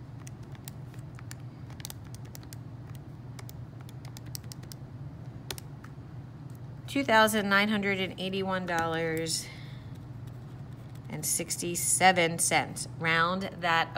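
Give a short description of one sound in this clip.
Calculator buttons click as they are pressed.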